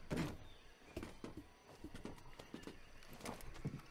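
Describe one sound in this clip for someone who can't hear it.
A metal grate rattles as someone climbs it.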